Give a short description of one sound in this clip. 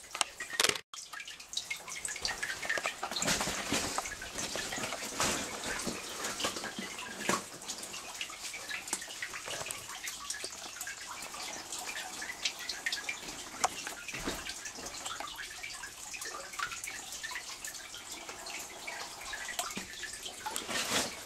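Water drips and trickles nearby.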